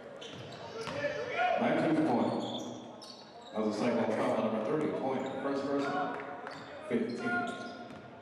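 Sneakers squeak on a court.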